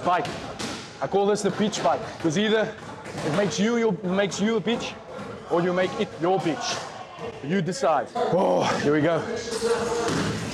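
A man talks energetically into a close microphone.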